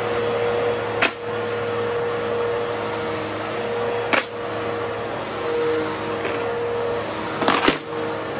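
An upright vacuum cleaner clicks and knocks as it is pushed back and forth.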